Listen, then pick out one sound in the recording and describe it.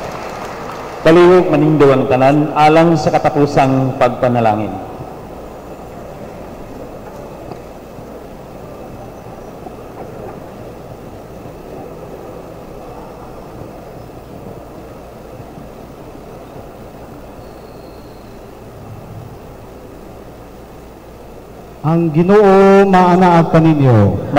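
A man chants in a sustained voice through a microphone, echoing in a large hall.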